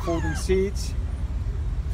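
A button clicks as a finger presses it.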